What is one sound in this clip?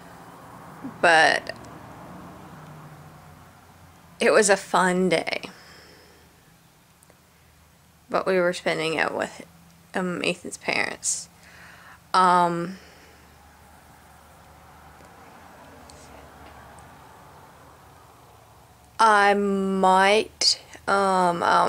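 A woman talks calmly and close by, in short bursts with pauses.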